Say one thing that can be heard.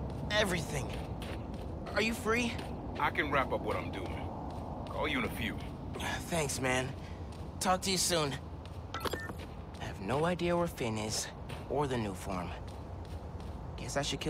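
Footsteps run across a hard rooftop.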